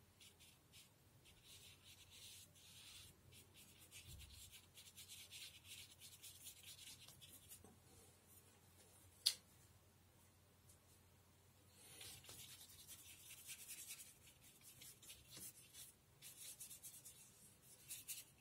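A paintbrush softly brushes across paper.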